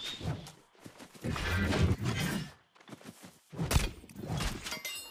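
A sword strikes a creature with sharp, heavy blows.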